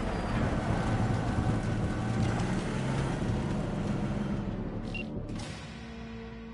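A car engine roars as a vehicle drives over rough ground.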